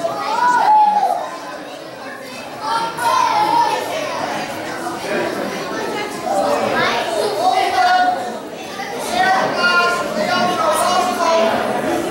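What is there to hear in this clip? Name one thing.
Many children chatter and call out in a large echoing hall.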